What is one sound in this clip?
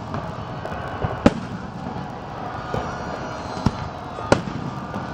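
Fireworks crackle and fizzle overhead.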